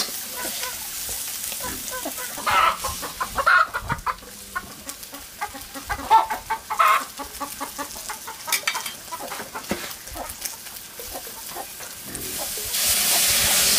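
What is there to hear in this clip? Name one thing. Meat sizzles in a hot steel wok.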